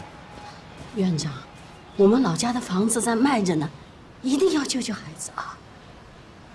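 An elderly woman pleads loudly and emotionally.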